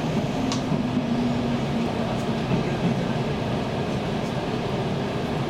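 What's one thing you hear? Train brakes hum with a low, wavering whine.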